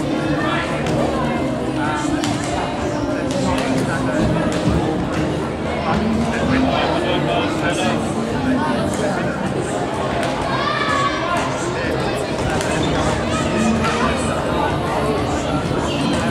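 Many voices of children and adults chatter throughout a large echoing hall.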